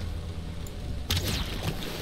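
A weapon strikes with a sharp hit.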